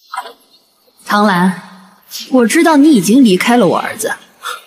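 A woman speaks coldly and slowly up close.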